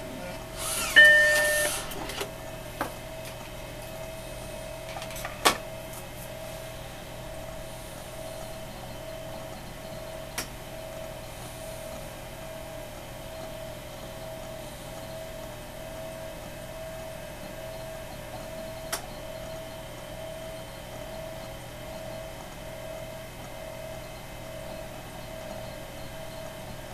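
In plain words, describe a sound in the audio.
A computer hums steadily with a faint pulsing whine.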